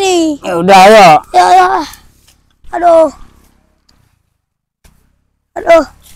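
A young boy talks excitedly close by, in a high voice.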